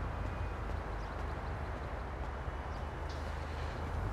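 Footsteps slap quickly on pavement.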